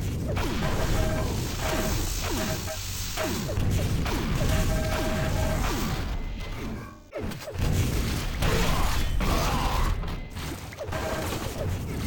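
A video game lightning gun crackles as it fires a beam.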